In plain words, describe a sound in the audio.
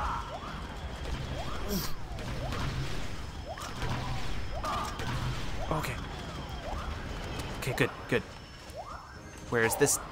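Laser blasts zap and whine rapidly from a video game.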